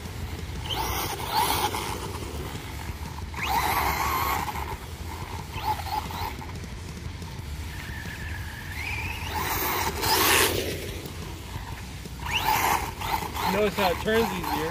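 Tyres scrape and spray loose dirt.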